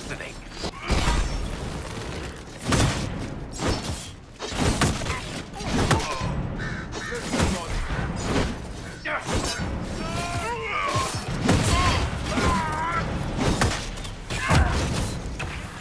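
Weapons clash and magic bursts crackle in a fight.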